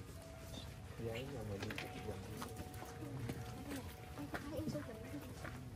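Several women chat and murmur nearby outdoors.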